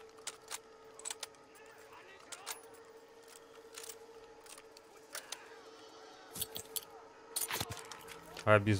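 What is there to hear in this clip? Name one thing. A rifle's bolt and cartridges click as the rifle is reloaded.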